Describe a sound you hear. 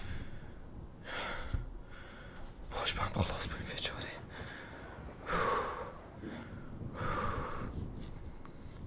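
A young man talks casually into a close microphone.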